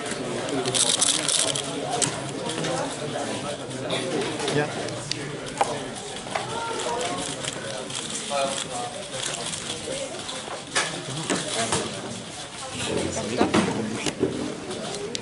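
A plastic puzzle cube clicks and rattles as it is twisted quickly.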